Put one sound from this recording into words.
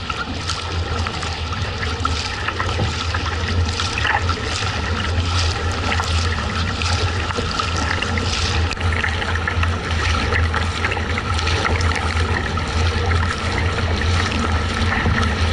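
Water laps and swishes against the hull of a kayak.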